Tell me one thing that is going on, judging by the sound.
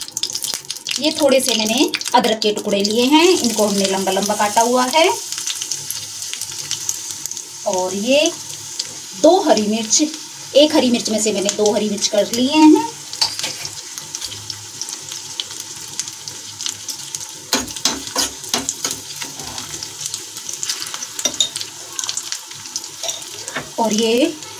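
Oil sizzles and crackles in a pan.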